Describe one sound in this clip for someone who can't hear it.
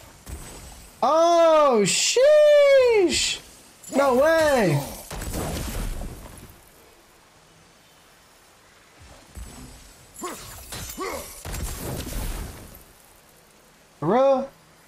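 Magic bursts ring out with swooping, warbling tones.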